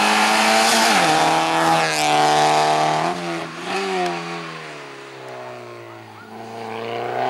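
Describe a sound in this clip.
A rally car's engine drops sharply in pitch, several times.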